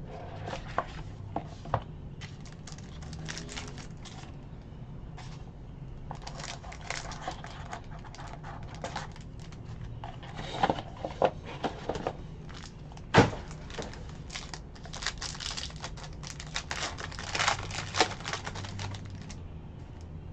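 A foil wrapper crinkles and tears open up close.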